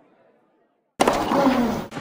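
A tennis racket strikes a ball hard.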